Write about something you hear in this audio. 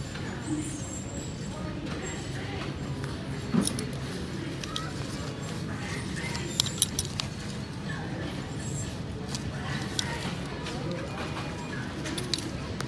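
Clothes hangers clack and scrape along a metal rail.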